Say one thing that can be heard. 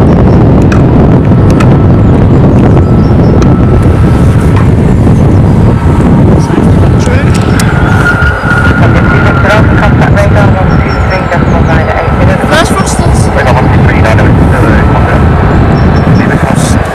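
A jet airliner's engines roar loudly as it lands and rolls down the runway.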